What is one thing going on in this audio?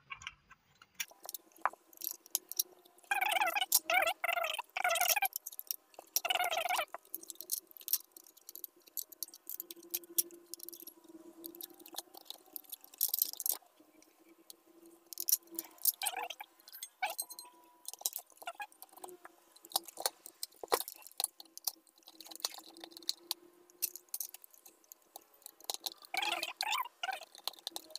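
Hard plastic parts click and knock as they are handled.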